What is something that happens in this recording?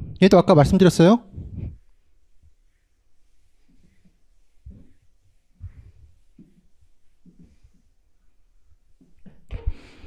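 An eraser rubs across a chalkboard.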